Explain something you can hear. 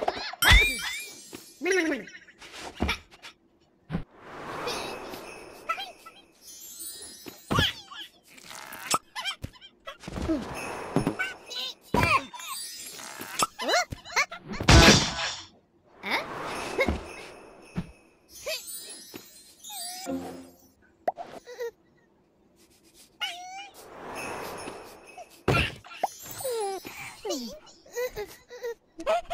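Cartoon sound effects chirp, squeak and whoosh in short bursts.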